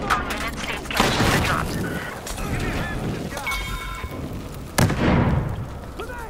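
An explosion booms and echoes.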